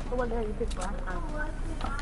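A pickaxe strikes a wooden wall with sharp knocks.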